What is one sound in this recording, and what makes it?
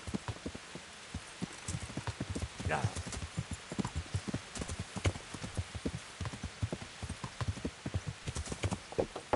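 A horse's hooves pound steadily on a dirt path.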